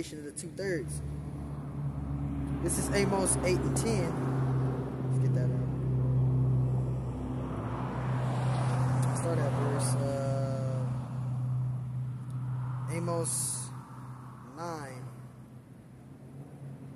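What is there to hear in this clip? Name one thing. Traffic hums steadily on a road outdoors.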